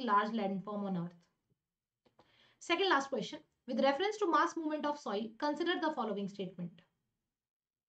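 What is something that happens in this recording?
A young woman speaks calmly and clearly into a microphone.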